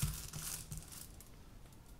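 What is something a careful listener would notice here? Hands press and smooth crinkling foil on paper.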